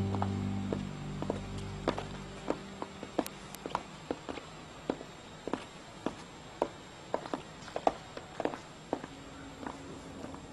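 Footsteps tap steadily down a staircase.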